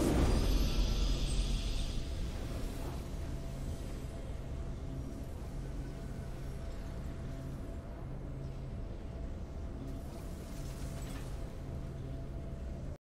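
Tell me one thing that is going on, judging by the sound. Triumphant game music swells and then settles into a low, steady hum.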